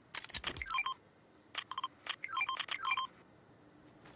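Short electronic menu beeps chirp in quick bursts.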